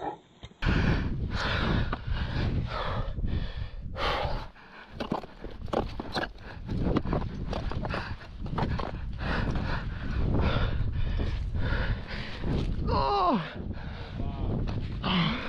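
Wind gusts roughly against the microphone outdoors.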